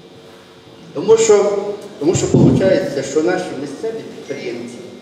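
A man speaks loudly to an audience in a large echoing hall.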